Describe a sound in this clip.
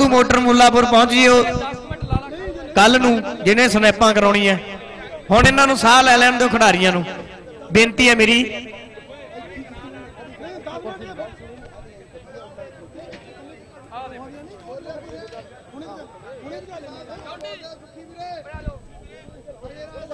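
A crowd of men chatters nearby.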